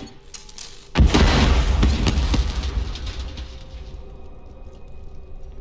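An explosion booms and roars, then slowly fades.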